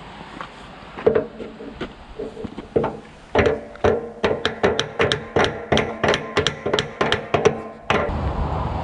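A ratchet strap clicks rapidly as it is tightened.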